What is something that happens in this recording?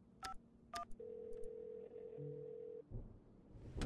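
A phone line gives a steady, flat tone.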